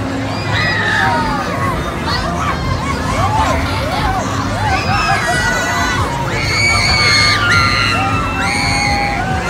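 A fairground ride rumbles steadily.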